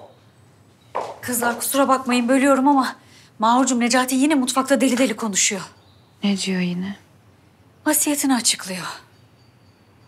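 A woman shouts with emotion at close range.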